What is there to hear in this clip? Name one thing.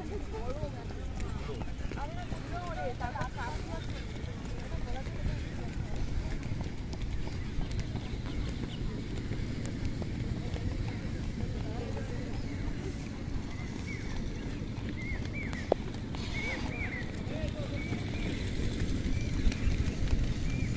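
Runners' feet thud softly on grass.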